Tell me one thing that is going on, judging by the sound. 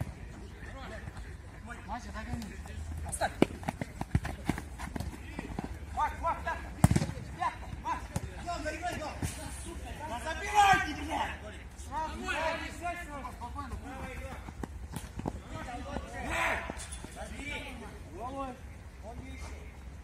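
Men shout to each other across a football pitch outdoors.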